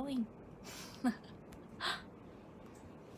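A young woman laughs briefly.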